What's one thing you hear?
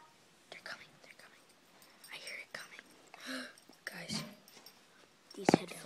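A young boy speaks quietly, close by.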